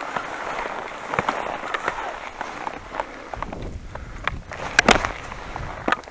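Skis hiss and crunch over packed snow.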